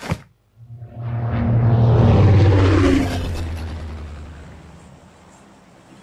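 A large propeller plane roars past with a rushing whoosh.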